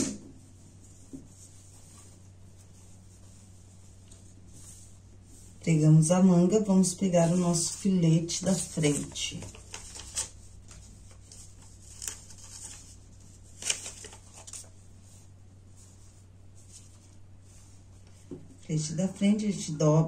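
Fabric rustles as hands smooth and fold it.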